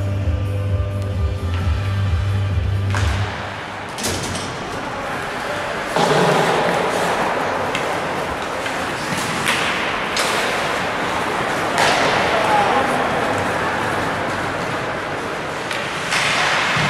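Ice skates scrape and carve across the ice.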